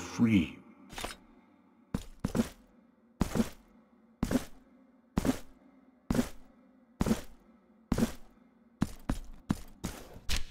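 Footsteps clack on a stone floor at a steady pace.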